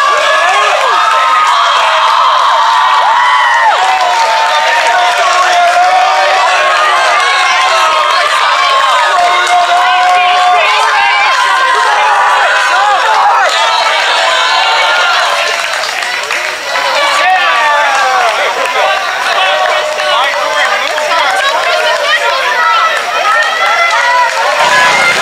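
A crowd of spectators cheers and shouts nearby outdoors.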